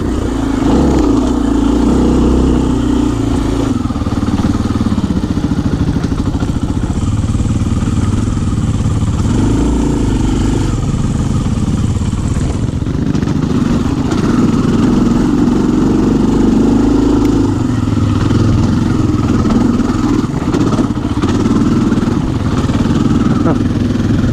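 A dirt bike engine roars up close, revving up and down as it rides.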